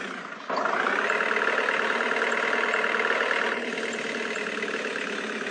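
A van engine hums steadily as it drives along a road.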